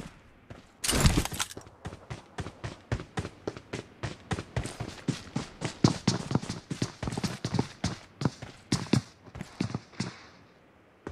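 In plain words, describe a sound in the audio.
Footsteps thud quickly as a game character runs.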